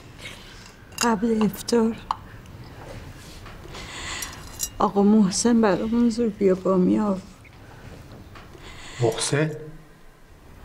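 An elderly woman speaks sadly and slowly, close by.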